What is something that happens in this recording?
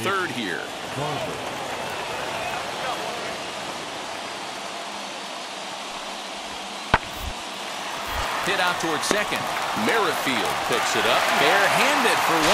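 A stadium crowd murmurs, then cheers louder.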